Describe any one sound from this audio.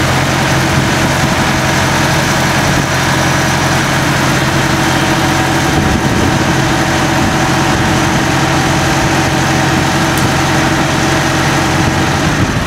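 A tractor diesel engine idles with a steady, close rumble.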